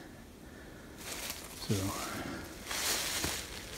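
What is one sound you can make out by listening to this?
Dry branches rustle and scrape close by.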